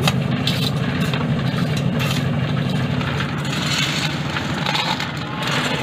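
Shovels scrape and scoop gravel and sand.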